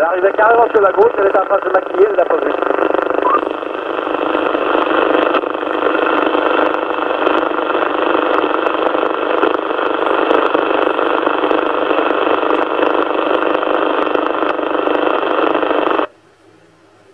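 A radio receiver hisses with loud, crackling static.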